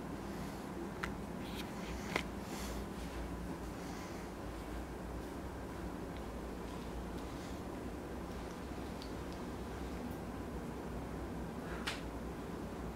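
A microscope's focus knob clicks softly now and then.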